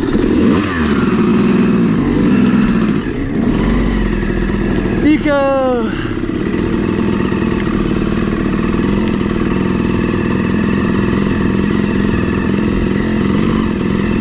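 A dirt bike engine buzzes and revs up close.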